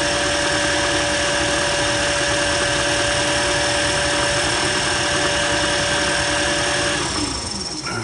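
A cutting tool scrapes steadily against spinning metal.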